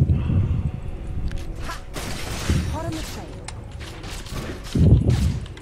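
Game spell effects whoosh and crackle in bursts during a fight.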